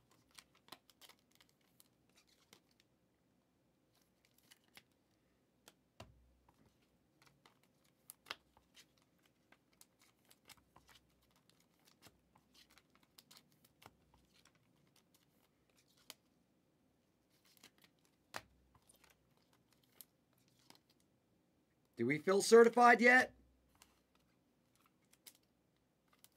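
Trading cards tap and slide against each other as they are handled.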